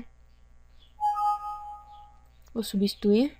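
A computer warning chime sounds once.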